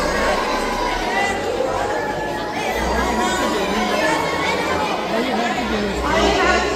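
A large crowd of children chatters and shouts loudly outdoors.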